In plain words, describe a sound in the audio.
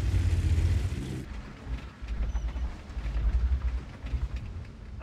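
A tank engine rumbles deeply as the tank drives.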